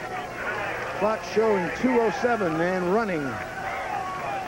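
Young men shout and cheer excitedly nearby.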